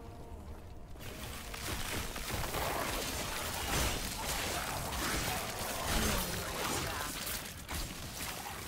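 Magic spells crackle and burst in quick succession.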